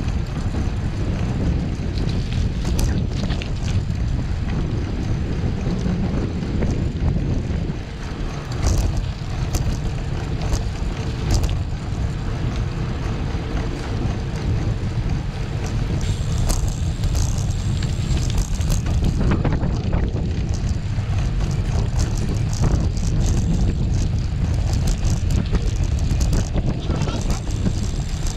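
Bicycle tyres roll and rattle over a rough, bumpy road.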